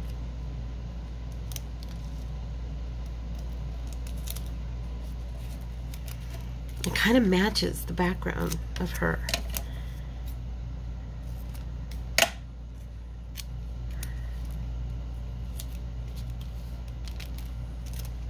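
Paper rustles and crinkles under fingers.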